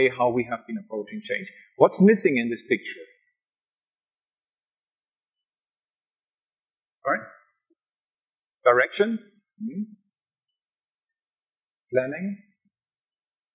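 A man speaks into a microphone in short bursts with long pauses.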